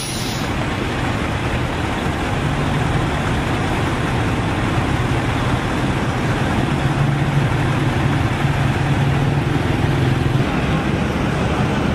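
A motorcycle engine putters close by.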